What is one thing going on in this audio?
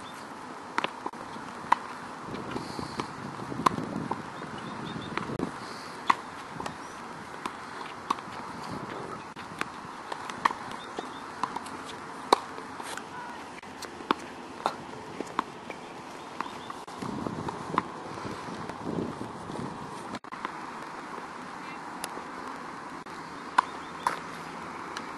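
A tennis racket strikes a ball with sharp pops, again and again.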